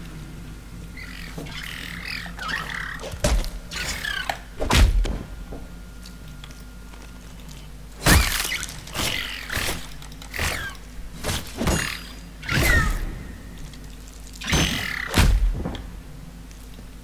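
Game creatures hiss, growl and screech in a fight.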